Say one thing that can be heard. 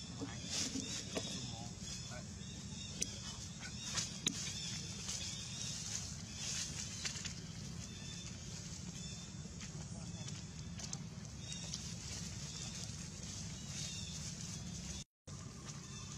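A baby monkey suckles with soft wet smacking sounds.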